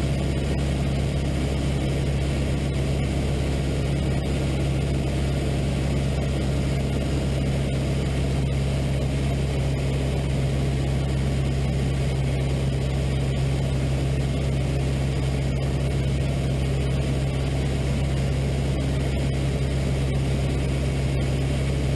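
Wind rushes past the plane.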